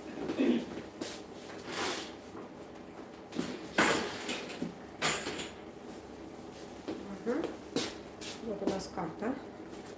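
A plastic apron rustles as a woman moves about.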